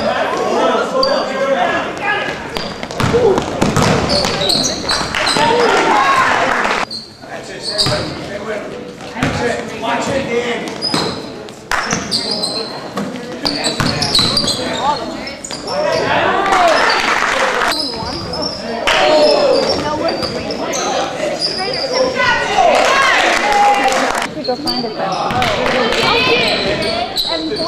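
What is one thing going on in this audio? A crowd of spectators shouts and cheers with excitement in an echoing gym.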